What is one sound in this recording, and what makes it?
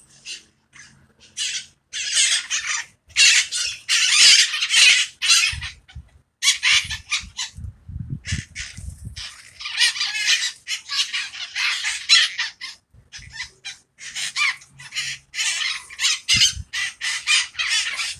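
Parakeets screech from a tree.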